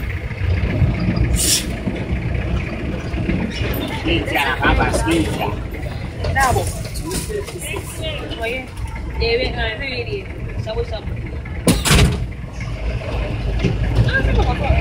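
An engine rumbles low and steady as a minibus drives.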